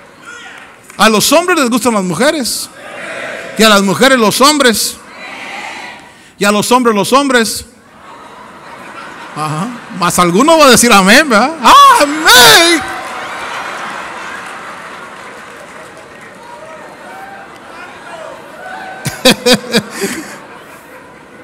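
A middle-aged man preaches loudly and with passion into a microphone in a large echoing hall.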